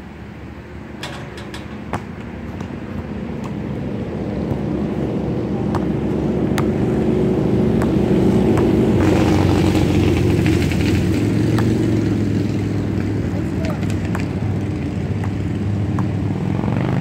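A basketball bounces on hard pavement outdoors.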